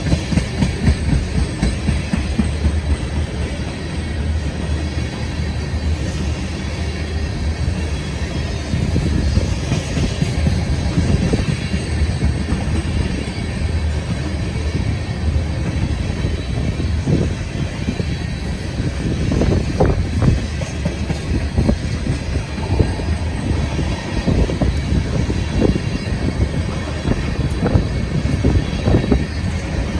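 A long freight train rumbles steadily past close by.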